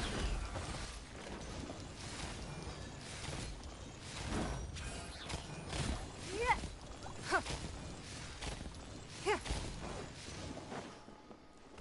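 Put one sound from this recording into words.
Magic energy bursts crackle and whoosh in quick succession.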